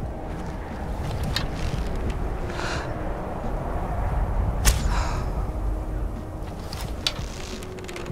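A bowstring creaks as a bow is drawn.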